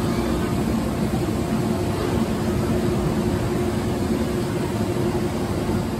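A roller coaster train rumbles slowly along its track.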